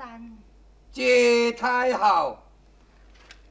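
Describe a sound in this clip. A middle-aged woman speaks sharply and loudly.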